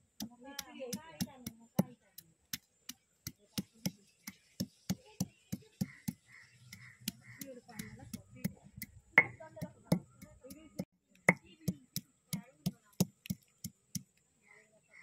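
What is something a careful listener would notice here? A stone pounds spices on a grinding stone with steady, sharp knocks.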